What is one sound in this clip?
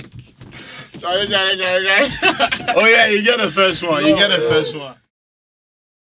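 A young man sings with animation close by.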